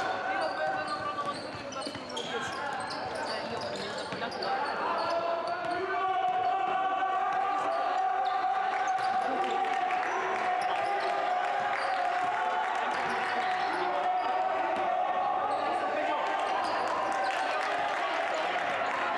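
A ball bounces on the court as players dribble.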